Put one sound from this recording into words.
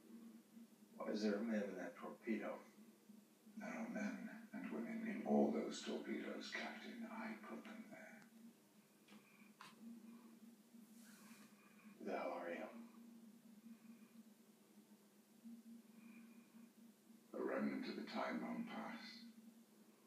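A man speaks in a low, calm voice through loudspeakers in a large room.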